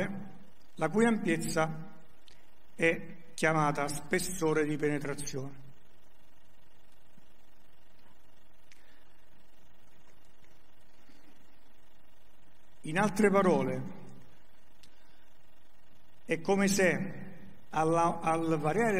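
An elderly man lectures calmly, in pauses.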